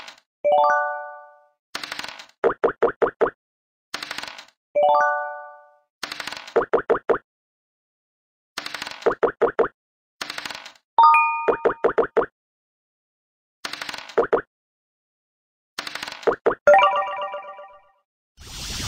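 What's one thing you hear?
A game chime rings.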